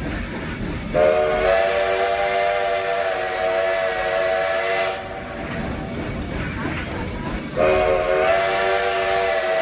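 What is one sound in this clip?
A steam train whistle blows loud and long, several times.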